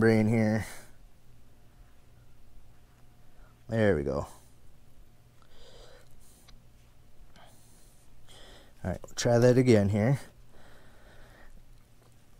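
A metal comb rakes softly through fur.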